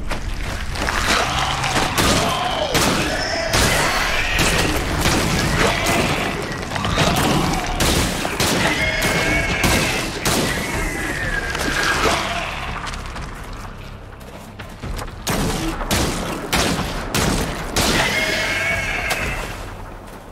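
Rapid electric gunshots crack and zap.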